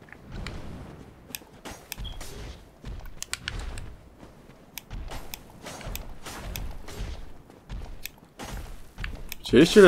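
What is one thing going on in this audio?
A sword swings and strikes with sharp thuds.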